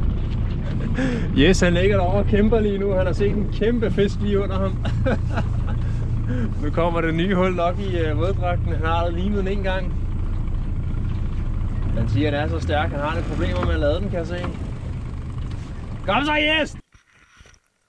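A boat's motor drones steadily.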